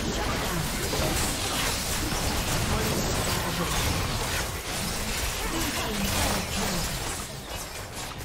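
Game spells burst and crackle during a busy fight.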